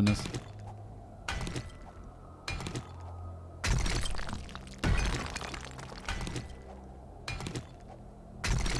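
A pickaxe strikes rock again and again with sharp knocks.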